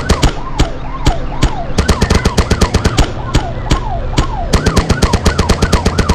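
A minigun fires rapid bursts of shots.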